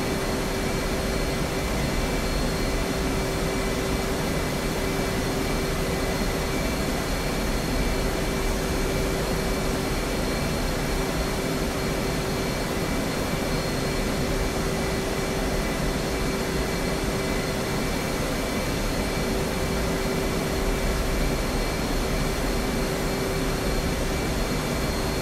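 A jet engine roars steadily, with a constant droning hum.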